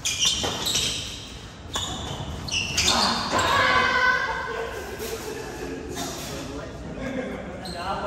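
Badminton rackets hit a shuttlecock back and forth in an echoing hall.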